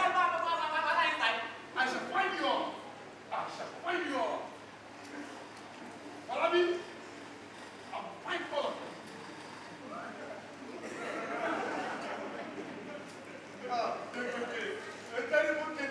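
A young man speaks loudly and with animation through a stage microphone.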